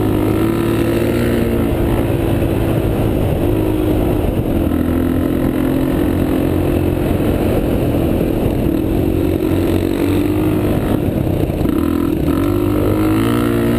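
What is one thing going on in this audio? A dirt bike engine roars close by, its pitch rising and falling with the throttle.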